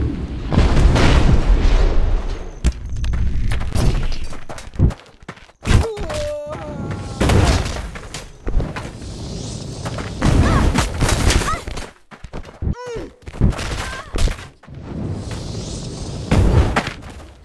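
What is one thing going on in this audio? Bursts of flame roar and crackle.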